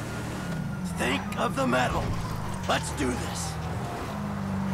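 Car tyres thump and rattle over rough ground.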